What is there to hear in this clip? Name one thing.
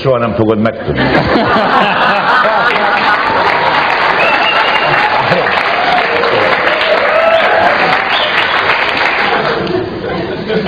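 A studio audience laughs loudly.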